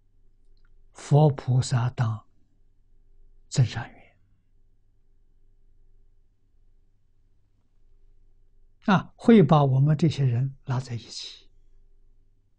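An elderly man speaks calmly and slowly into a microphone, with long pauses.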